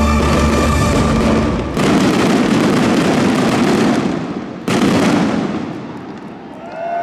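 Fireworks crackle and hiss overhead.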